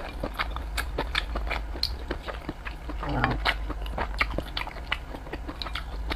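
Chopsticks clink against a bowl.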